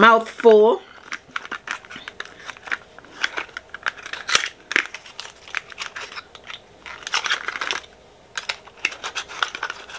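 Small clicks and rustles of handling makeup come and go.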